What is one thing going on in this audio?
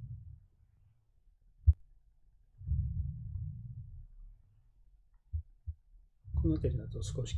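Heartbeat sounds thump low and muffled through a stethoscope.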